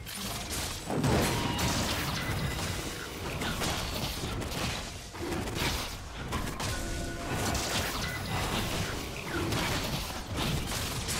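Game weapons strike with sharp hits.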